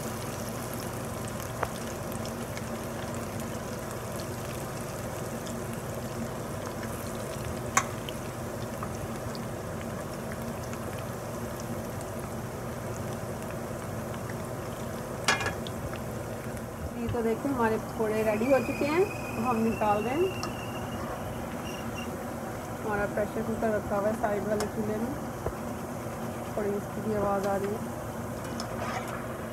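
Oil sizzles and bubbles steadily as food deep-fries.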